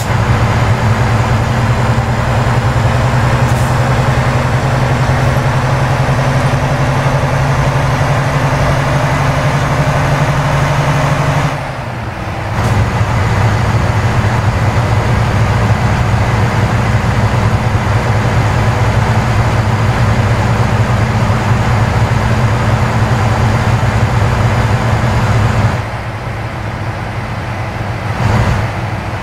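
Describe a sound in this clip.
A truck engine hums steadily from inside the cab.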